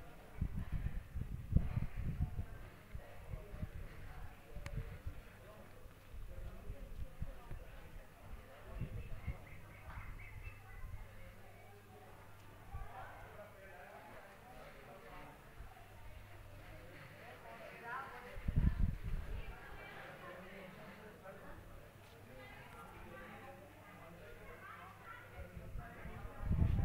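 Men and women talk quietly in the distance outdoors.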